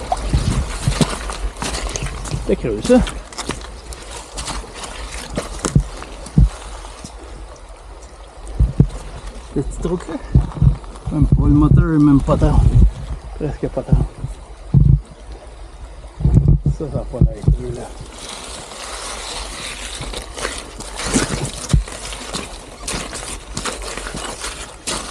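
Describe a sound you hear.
A wheel rolls and crunches over loose stones.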